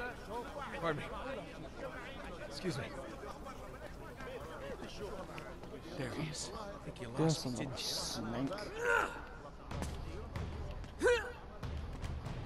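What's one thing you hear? A young man says short polite phrases as he pushes past people.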